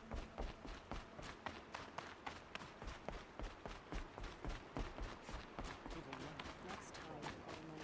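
Footsteps thud quickly and steadily on snow and wooden planks.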